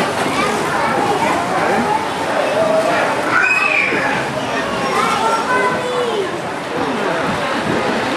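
Many people chatter in a busy crowd nearby.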